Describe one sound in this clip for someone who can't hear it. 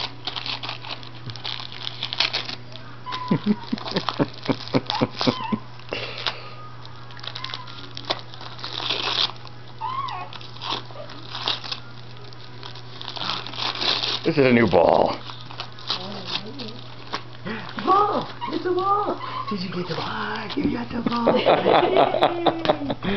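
A dog tears and crinkles paper close by.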